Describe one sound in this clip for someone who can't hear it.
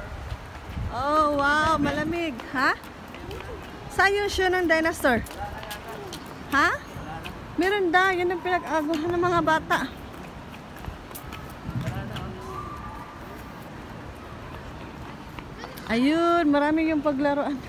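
A young child talks and calls out excitedly nearby.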